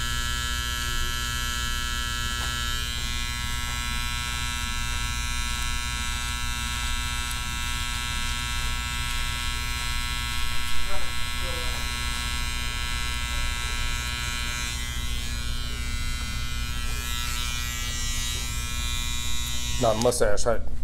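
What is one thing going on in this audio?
An electric trimmer buzzes steadily close by.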